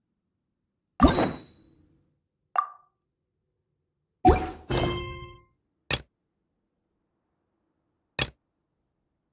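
Short chiming game interface tones sound as menus open and close.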